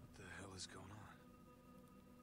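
A younger man speaks gruffly, close by.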